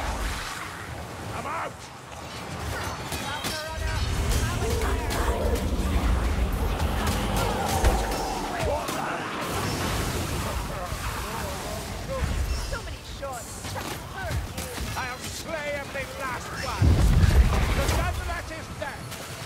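A crossbow fires bolts with sharp snaps.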